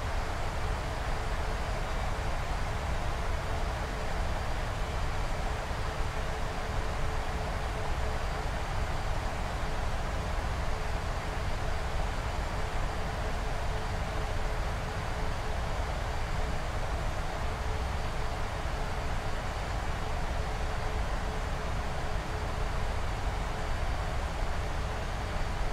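Jet engines roar steadily with a constant rush of air.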